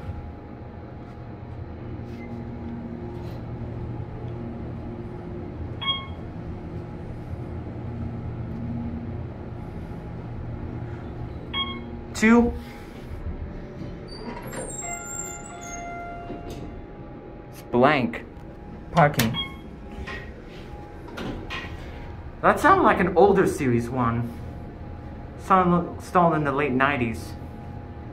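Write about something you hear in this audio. An elevator hums steadily as it moves.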